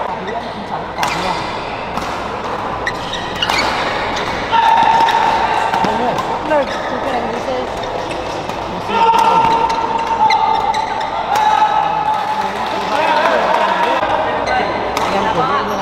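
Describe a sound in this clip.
Badminton rackets strike a shuttlecock in a large echoing hall.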